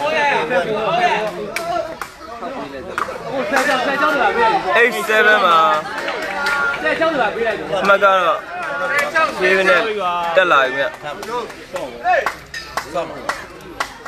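A crowd of spectators chatter and call out loudly nearby outdoors.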